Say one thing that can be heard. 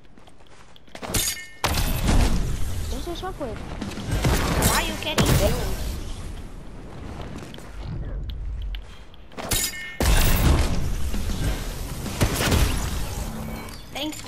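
Game whooshes and bursts sound as a character launches into the air.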